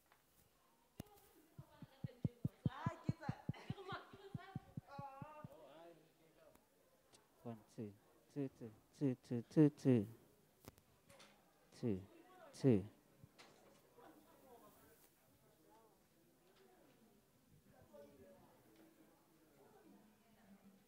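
People talk quietly in a room with a light echo.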